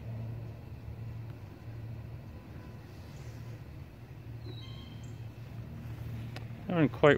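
A small motorbike engine hums steadily at low speed.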